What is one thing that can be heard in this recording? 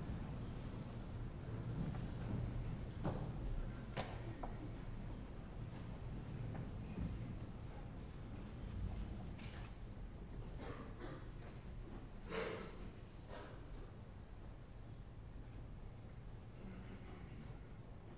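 An orchestra plays softly in a large hall.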